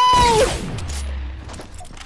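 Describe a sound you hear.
A pickaxe swings through the air with a whoosh.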